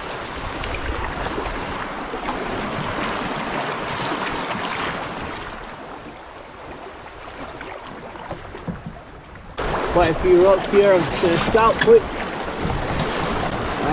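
A river rushes over rapids.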